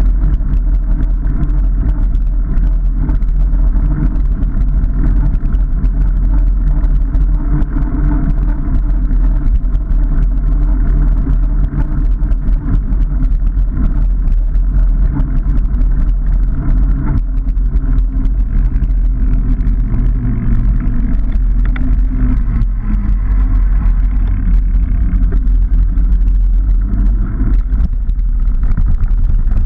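Bicycle tyres roll and crunch over a rough path.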